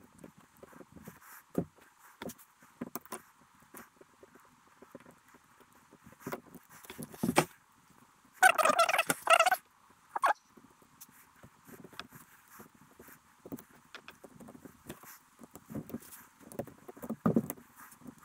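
Small metal and plastic parts click and knock as they are handled up close.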